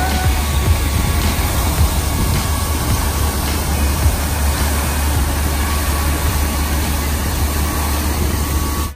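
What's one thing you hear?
Water gushes and sprays loudly from a burst pipe.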